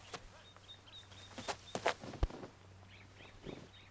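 A flag's fabric rustles and snaps as it is folded.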